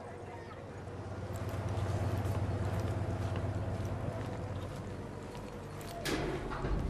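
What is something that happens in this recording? A crowd murmurs in the distance.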